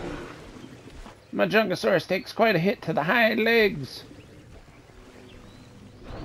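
Large animals wade through water with soft splashes.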